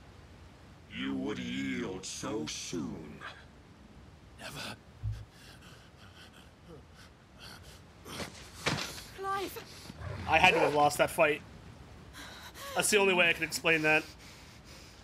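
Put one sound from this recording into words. A man speaks slowly in a deep, menacing voice.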